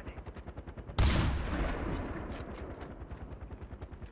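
A rifle shot booms and rolls off into the distance.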